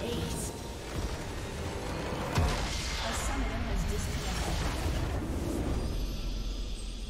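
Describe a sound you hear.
Game spells and attacks crash and whoosh in a fight.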